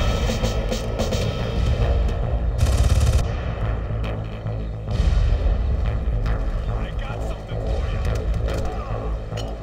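Guns fire in repeated sharp shots.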